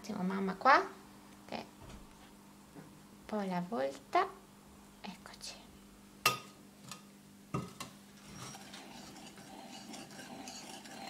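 A whisk scrapes and clinks against a metal pan.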